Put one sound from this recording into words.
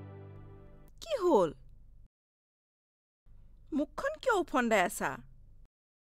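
A woman speaks with animation nearby.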